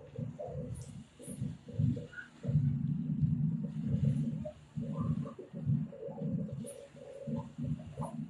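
A fountain's water jet splashes steadily into a pool.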